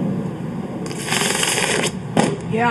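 A skateboard grinds loudly along a concrete ledge.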